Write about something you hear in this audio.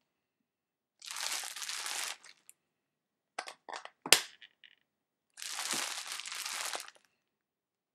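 Plastic wrap crinkles.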